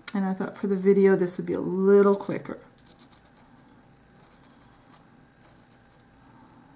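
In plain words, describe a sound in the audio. A marker pen scratches softly across a rough surface.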